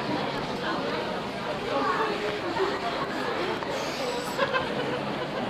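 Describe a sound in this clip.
A crowd of men and women murmurs and talks in a large echoing hall.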